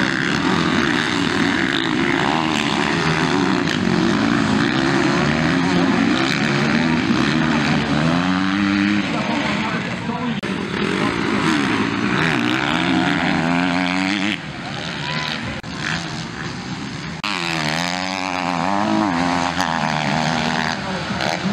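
Several motocross bikes rev up and down as they race around a dirt track.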